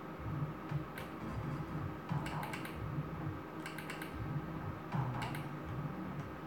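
A slot machine clicks sharply as its feature spins.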